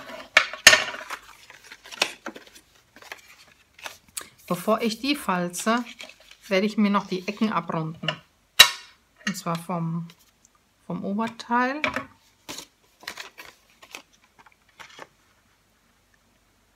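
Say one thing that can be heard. Paper rustles and crinkles as it is folded and handled.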